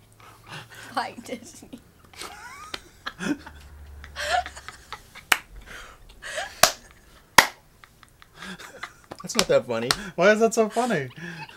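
A girl laughs loudly.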